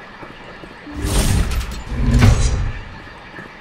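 A heavy door slides open with a loud mechanical whoosh.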